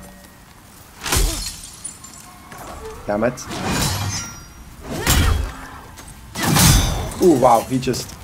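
A heavy sword whooshes through the air in sharp swings.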